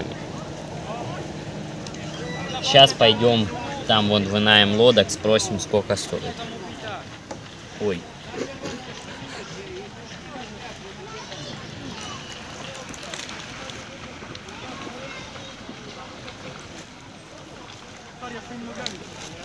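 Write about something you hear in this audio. Water laps gently against the bank.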